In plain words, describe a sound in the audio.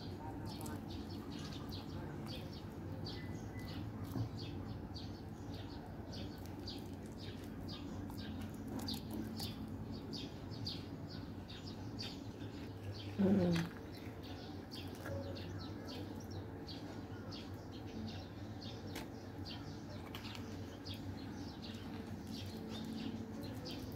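A metal spoon scrapes soft avocado flesh from its skin.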